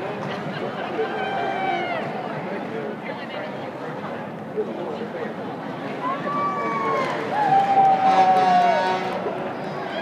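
People in the crowd shout and whoop loudly.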